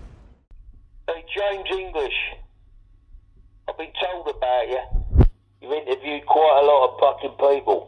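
A voice speaks through a telephone handset's small speaker.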